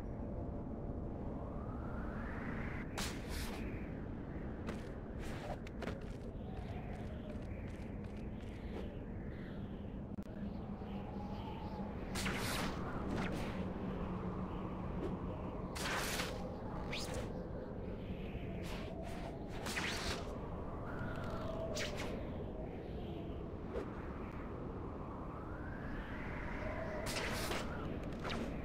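Wind rushes past steadily during a fast swinging flight.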